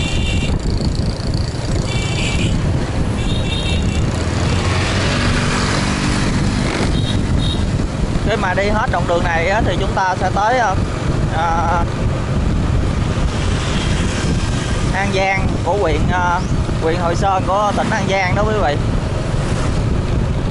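Other motorbikes pass by close.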